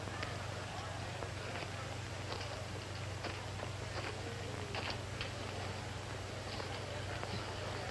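A man walks with quiet footsteps on the ground.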